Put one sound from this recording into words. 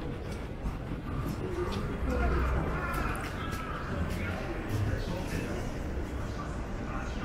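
Voices of passers-by murmur in a busy street.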